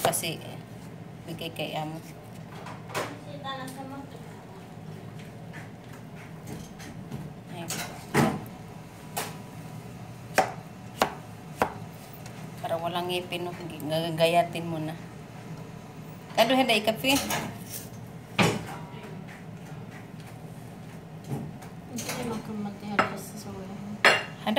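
A knife cuts through a melon on a plate.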